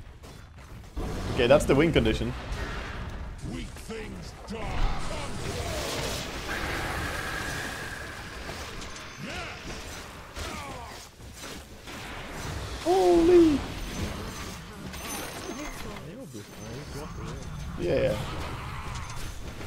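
Game battle sounds of magic blasts and clashing play.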